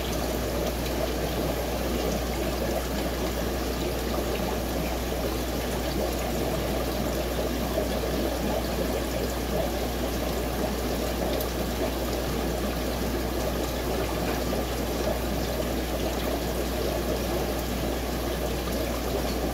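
Air bubbles gurgle and fizz steadily from an aquarium filter.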